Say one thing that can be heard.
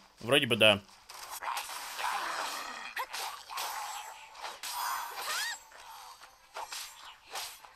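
Swords swoosh and strike in a fast fight.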